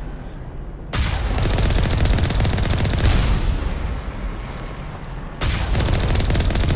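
A large vehicle's engine roars as it drives over rough ground.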